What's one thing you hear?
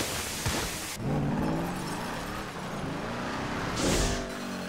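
Tyres skid on dirt.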